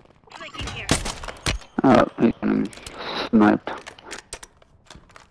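A rifle bolt is worked with sharp metallic clicks.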